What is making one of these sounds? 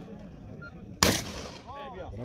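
A shotgun fires a single loud shot outdoors and echoes off the hillside.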